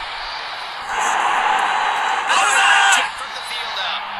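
A large stadium crowd cheers loudly.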